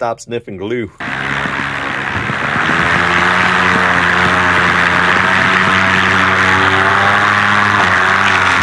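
A drone's motors hum steadily close by.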